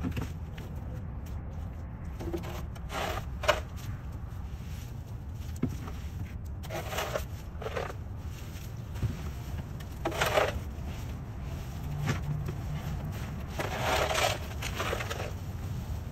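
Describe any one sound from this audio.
A shovel scrapes across concrete.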